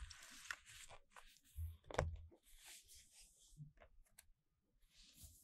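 Stiff paper pages rustle as they are turned.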